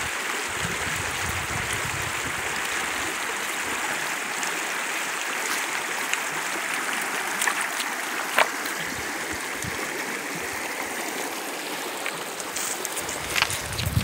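A stream flows and babbles nearby.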